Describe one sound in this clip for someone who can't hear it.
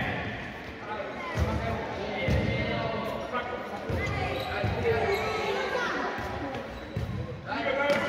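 Young children shout and call out in an echoing hall.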